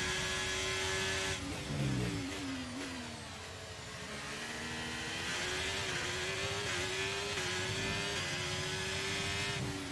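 A racing car engine whines at high revs, drops sharply in pitch, then climbs steadily again.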